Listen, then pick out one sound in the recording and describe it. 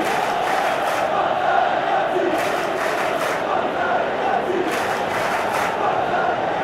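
A player claps his hands.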